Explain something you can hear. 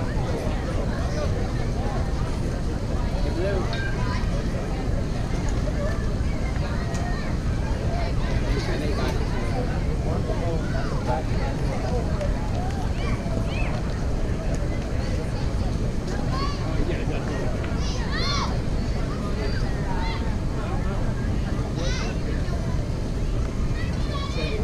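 Men and boys call out faintly across an open field.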